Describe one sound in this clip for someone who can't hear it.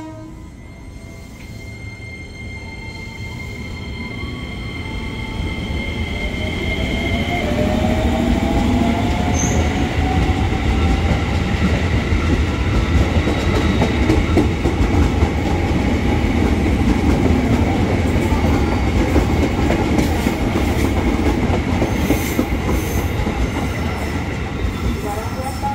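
An electric train pulls away and rumbles past, growing louder with a rising hum.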